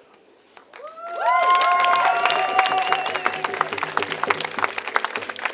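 A crowd cheers and whoops.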